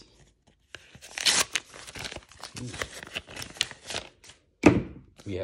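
A paper envelope is torn open with a crisp ripping and rustling.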